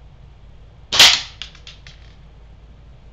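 A small object drops onto a plastic plate and bounces a few times with light clicks.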